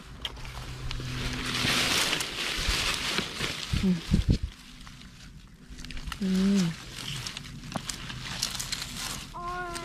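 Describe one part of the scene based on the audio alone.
Leaves rustle as a hand pushes through low plants.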